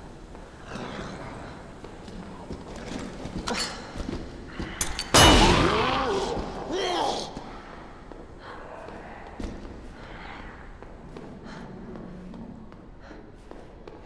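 Bare footsteps pad on a hard wet floor.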